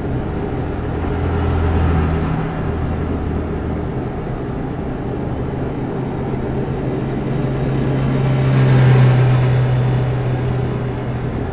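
Passing vehicles swoosh by.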